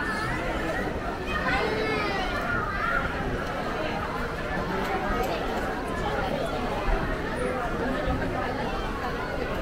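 A crowd of adults and children chatters nearby.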